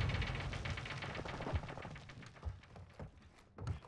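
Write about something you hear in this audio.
A rifle fires in rapid shots.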